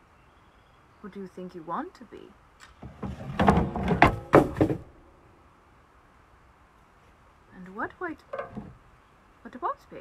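A young woman speaks close by, with animation.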